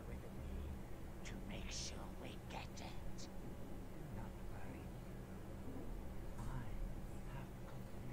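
An elderly man speaks slowly and quietly.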